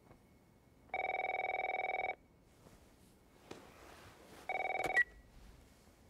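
A phone rings in short electronic bursts.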